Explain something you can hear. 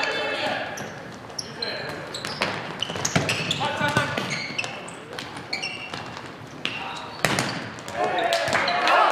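Players shout to each other across the echoing hall.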